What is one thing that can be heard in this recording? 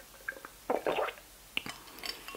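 A young woman sips a drink and swallows close by.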